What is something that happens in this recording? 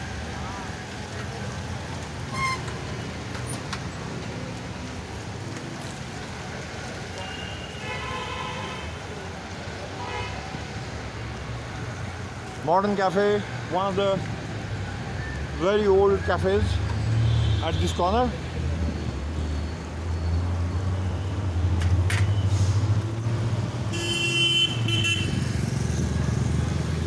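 Bicycles roll along a wet road.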